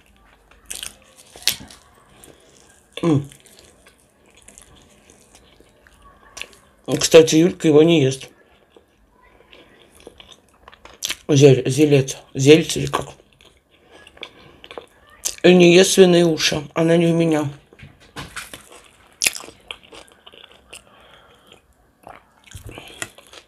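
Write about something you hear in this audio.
A woman chews and smacks food close to a microphone.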